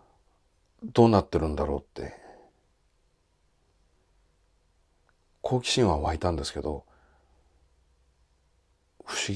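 A man speaks calmly and slowly, close to a microphone, with long pauses.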